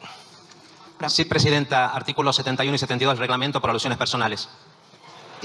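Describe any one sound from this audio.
A woman speaks calmly through a microphone in a large hall.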